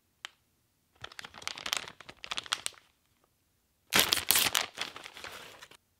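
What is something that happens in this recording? A plastic package crinkles and rustles as it is handled.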